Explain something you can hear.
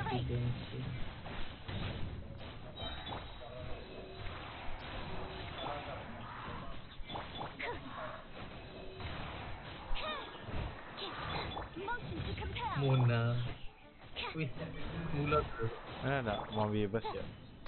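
Sword strikes and magic blasts crash in quick bursts.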